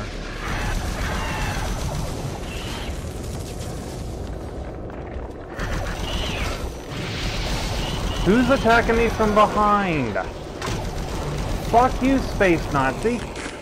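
A plasma gun fires rapid zapping shots.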